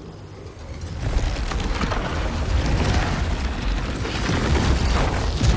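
A magical boat unfurls with a loud rushing whoosh.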